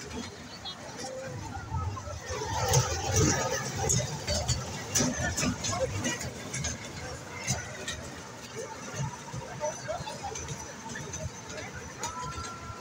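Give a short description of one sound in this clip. A small ride train rattles and clacks along its track.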